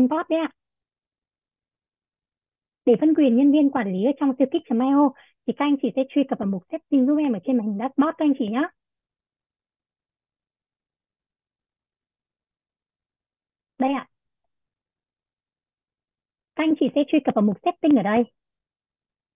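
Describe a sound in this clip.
A young woman explains calmly, heard through an online call.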